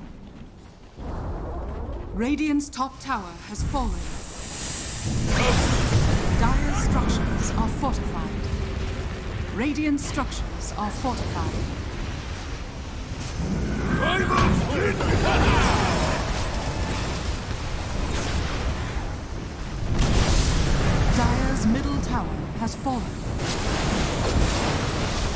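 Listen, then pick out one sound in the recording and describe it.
Magic blasts crackle and boom in a fierce fight.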